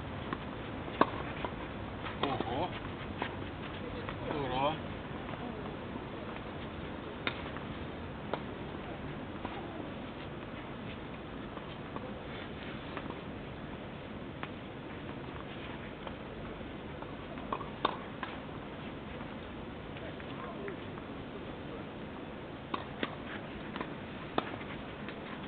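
A tennis ball is struck with sharp pops of a racket, far off outdoors.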